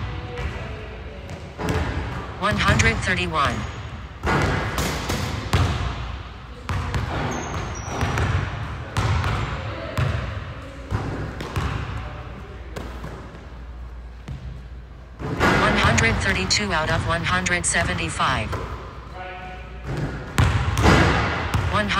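A basketball bounces on a wooden court in a large echoing gym.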